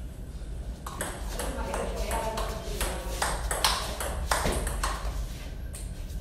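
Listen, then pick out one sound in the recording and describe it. Sneakers squeak and shuffle on a hard floor.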